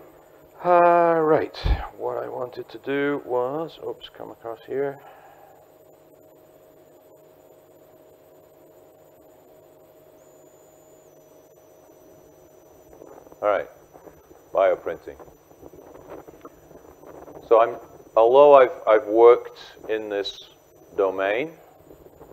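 A middle-aged man speaks calmly into a microphone, lecturing.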